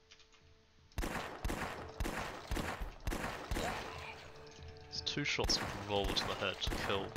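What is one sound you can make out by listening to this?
Gunshots ring out in quick, sharp bursts.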